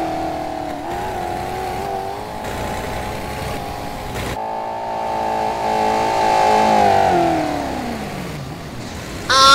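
A car engine hums and revs, then winds down.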